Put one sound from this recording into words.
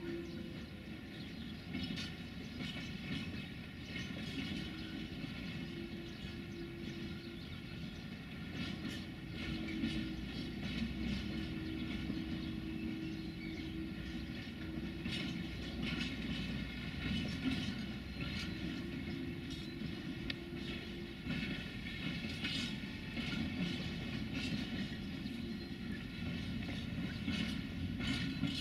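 A long freight train rolls past at a distance, its wheels rumbling and clattering over the rail joints.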